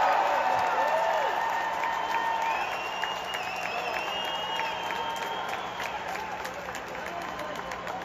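Two men clap their hands overhead in a steady rhythm.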